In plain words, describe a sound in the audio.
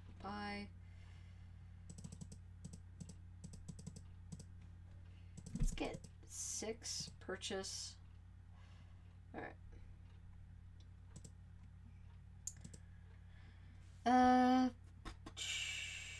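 Soft interface clicks sound as buttons are pressed.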